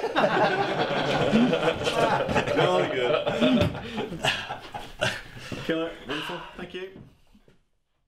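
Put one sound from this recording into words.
A man laughs cheerfully nearby.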